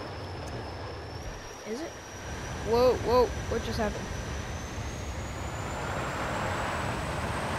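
A jet engine roars and grows louder.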